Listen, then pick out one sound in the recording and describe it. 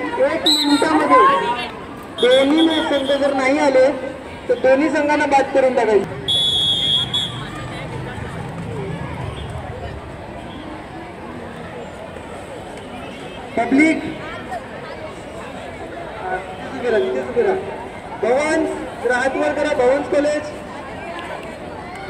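A young man chants rapidly and repeatedly.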